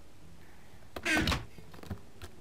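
A wooden chest lid thumps shut.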